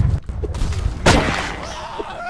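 A gunshot cracks loudly.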